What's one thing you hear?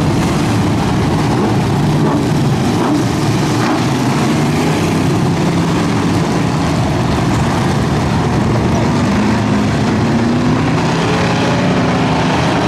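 Loud race car engines rumble and roar steadily as the cars roll past.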